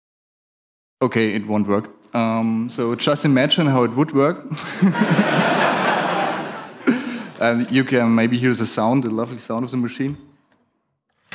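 A young man talks calmly through a microphone.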